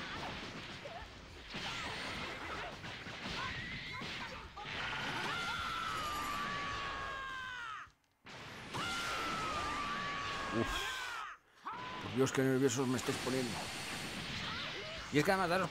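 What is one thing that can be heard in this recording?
Energy blasts whoosh and boom in a video game fight.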